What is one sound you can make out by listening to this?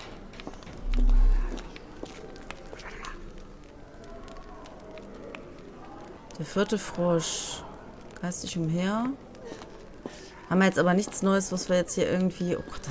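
Footsteps tap slowly on a stone floor.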